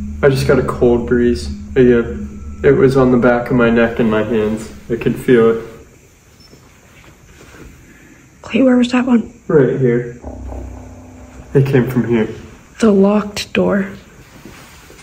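A young man talks quietly and close by, in a hushed voice.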